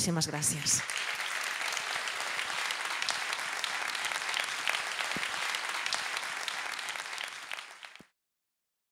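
An audience applauds steadily, then the clapping fades away.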